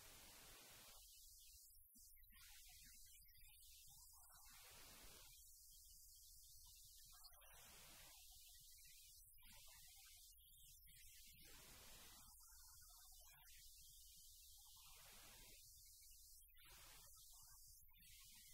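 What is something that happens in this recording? A woman reads aloud calmly.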